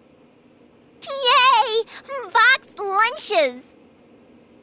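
A young girl cheers happily in a high voice.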